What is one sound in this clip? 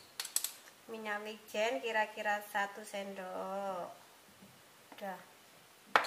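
A seasoning shaker rattles.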